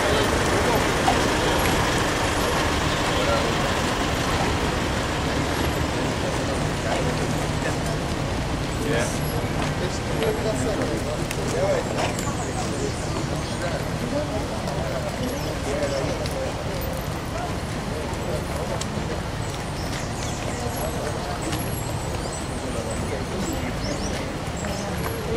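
Footsteps of a crowd shuffle on pavement.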